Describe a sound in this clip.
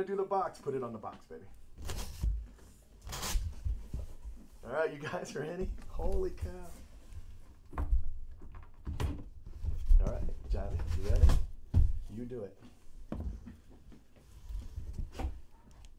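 Cardboard boxes scrape and knock as they are handled.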